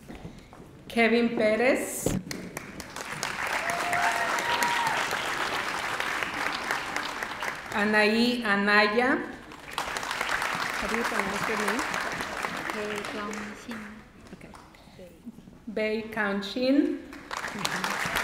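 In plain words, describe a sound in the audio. A woman reads out names through a microphone in a large echoing hall.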